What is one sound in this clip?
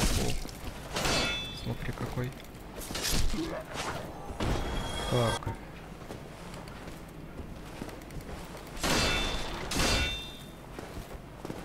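A sword swings and strikes in a fight.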